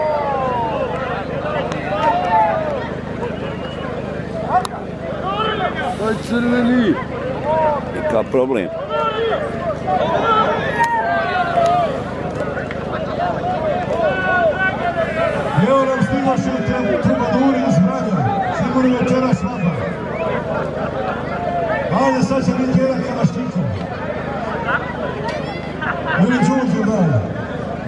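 Two bulls clash heads and shove against each other.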